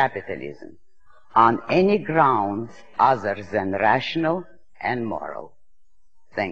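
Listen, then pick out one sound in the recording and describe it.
A woman speaks calmly and clearly, heard through an old recording.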